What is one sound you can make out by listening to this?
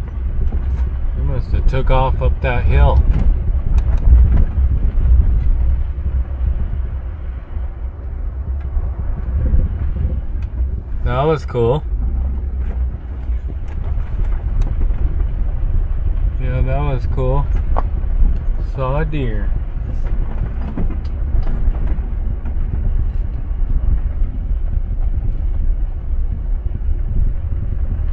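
Tyres crunch and rattle over a dirt road.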